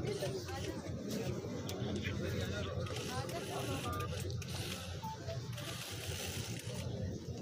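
A crowd chatters outdoors.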